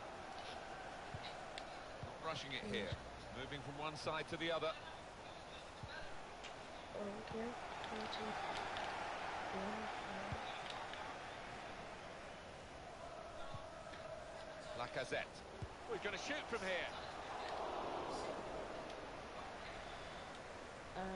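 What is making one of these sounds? A stadium crowd roars and murmurs steadily.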